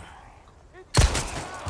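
A gunshot cracks loudly.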